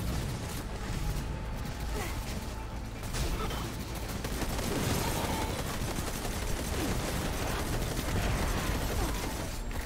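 Rapid gunfire rattles amid a fight.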